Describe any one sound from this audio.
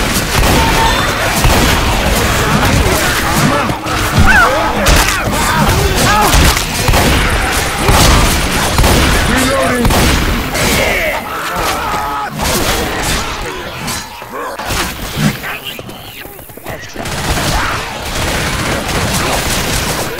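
Zombies snarl and growl close by.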